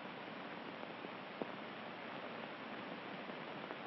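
Bedclothes rustle as a woman throws them off.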